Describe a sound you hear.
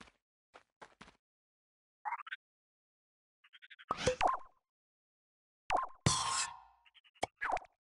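Short electronic game sound effects chirp, beep and whoosh.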